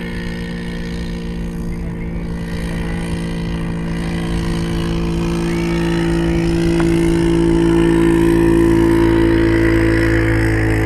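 A dune buggy engine drones in the distance and slowly grows louder.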